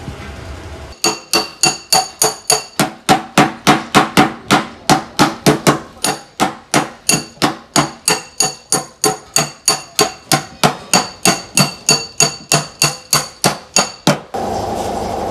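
A mallet taps rapidly and steadily on a car's metal panel.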